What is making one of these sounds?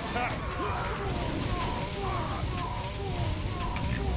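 Fiery missiles rain down and crash with a roar of impacts.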